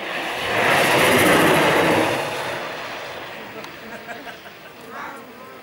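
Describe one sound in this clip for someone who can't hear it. Small tyres roll and hiss along asphalt as a light unpowered car coasts past downhill.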